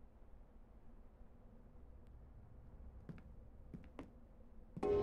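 Footsteps tap softly on stone.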